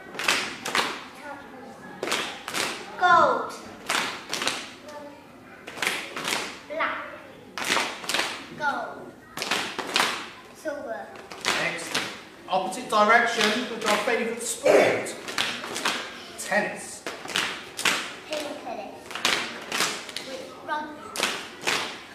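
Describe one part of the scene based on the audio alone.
A woman speaks and chants to a group of children.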